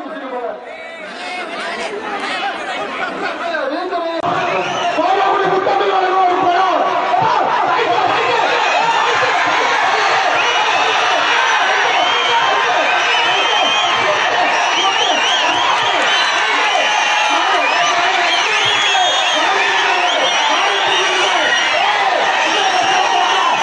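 A large crowd of men shouts and cheers outdoors.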